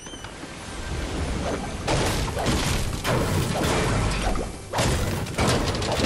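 A pickaxe repeatedly smashes against furniture and objects.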